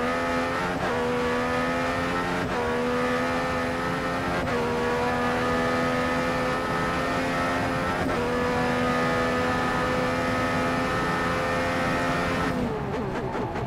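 A racing car engine screams at high revs, shifting up through the gears with brief dips in pitch.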